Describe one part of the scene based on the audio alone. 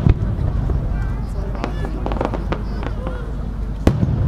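Fireworks crackle and fizzle after bursting.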